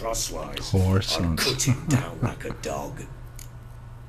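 An older man speaks gruffly and calmly, close by.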